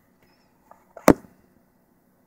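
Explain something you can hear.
A small plastic part clicks down onto a hard surface.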